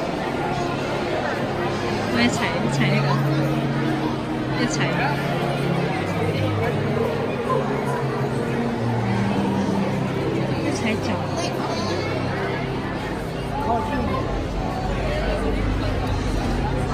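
A crowd chatters all around.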